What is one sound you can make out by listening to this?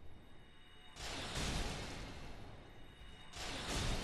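A burst of magic crackles and roars.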